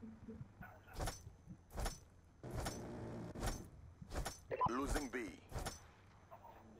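Footsteps clank on metal rungs at a steady pace.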